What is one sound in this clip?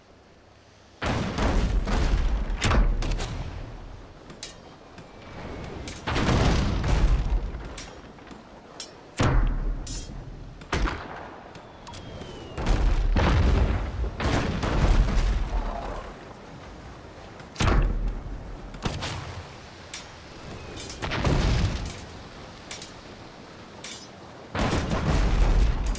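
Cannons boom in repeated heavy blasts.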